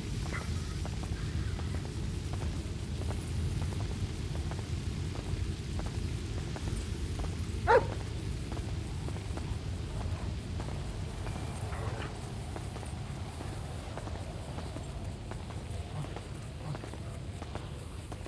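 Footsteps of a man walk steadily on pavement.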